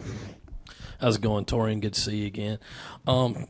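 A man speaks calmly into a microphone, close by.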